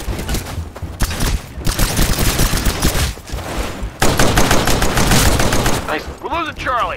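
A pistol fires rapid shots.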